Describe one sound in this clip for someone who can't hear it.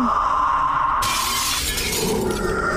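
Glass shatters with a loud crash.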